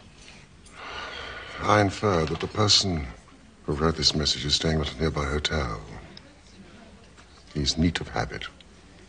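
A second man speaks thoughtfully, close by.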